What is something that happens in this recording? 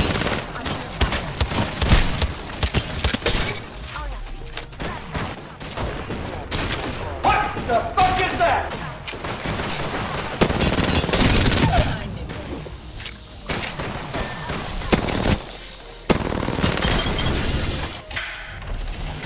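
Rapid gunfire rattles from a game.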